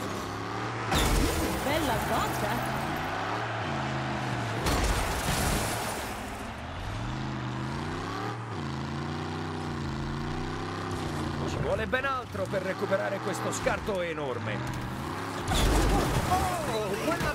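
A car crashes hard with a loud metallic bang.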